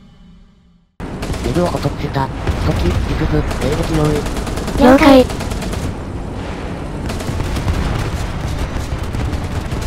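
A heavy tank engine rumbles low and steady.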